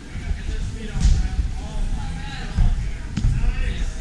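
Hands and feet thump against a climbing wall.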